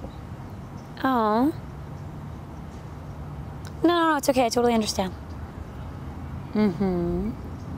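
A young woman talks on a phone close by.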